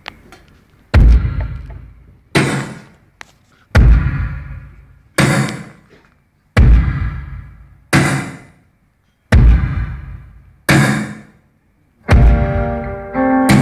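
A drummer hits loud cymbal and drum crashes that ring out and fade.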